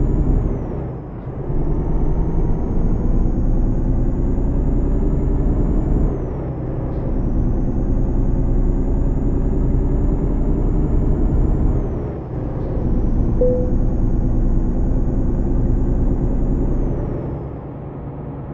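A truck engine drones, rising in pitch and dropping with each gear change.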